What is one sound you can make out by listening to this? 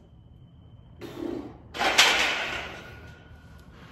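A barbell clanks into a metal rack.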